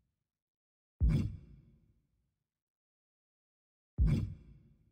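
A game menu gives a deep whooshing thud each time the selection changes.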